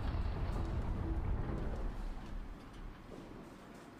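A deep, low hum drones and fades away.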